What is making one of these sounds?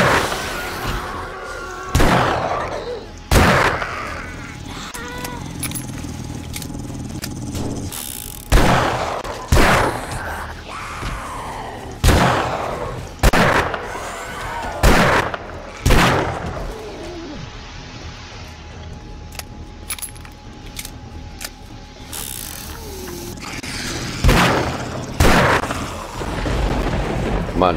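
Zombies growl and groan nearby.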